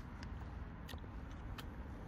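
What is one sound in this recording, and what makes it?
A plastic packet crinkles in a hand.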